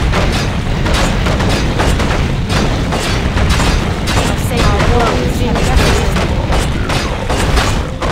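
Game weapons clash and thud repeatedly.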